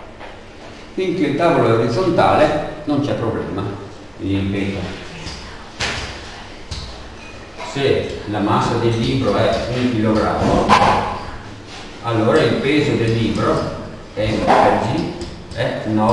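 A man speaks calmly close to a microphone.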